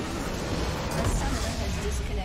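A large structure explodes with a deep boom.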